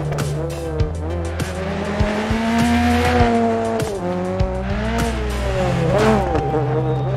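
Stones clatter against the car's underside.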